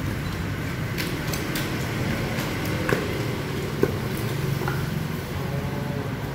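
A pestle thuds repeatedly in a clay mortar.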